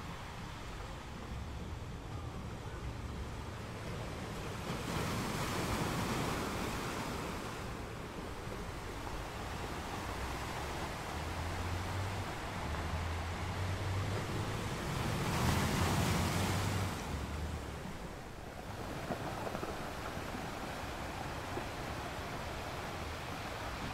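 Water washes and fizzes over rocks close by.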